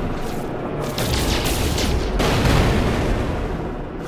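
A mining laser zaps in short bursts.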